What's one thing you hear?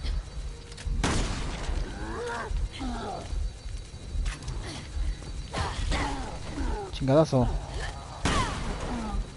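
Gunshots bang sharply now and then.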